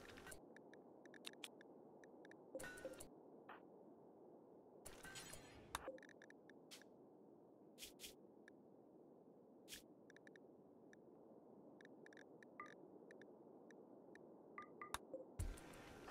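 Soft interface clicks sound as menus open and close.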